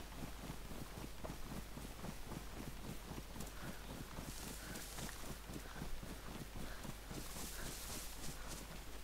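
Footsteps crunch steadily through grass and dry leaves.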